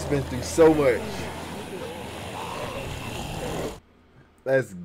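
Zombies groan and moan in a crowd.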